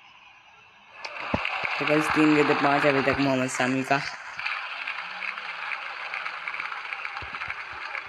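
A crowd roars in a large stadium.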